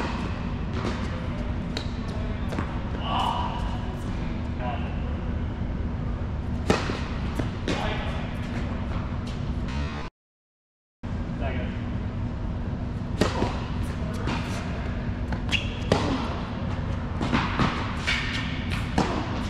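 Tennis balls are struck with rackets, with sharp pops echoing in a large indoor hall.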